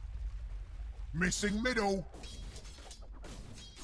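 Weapons clash and spells burst in a fast game battle.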